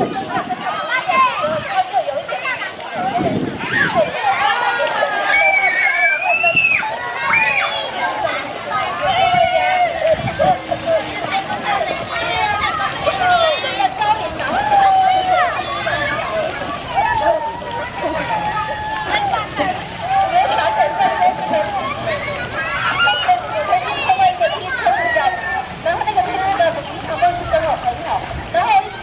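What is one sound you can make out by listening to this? Many children shout and squeal excitedly outdoors.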